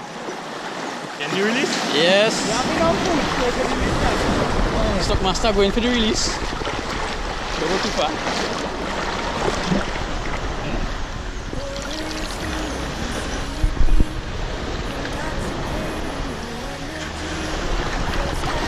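Small waves wash and lap on the shore.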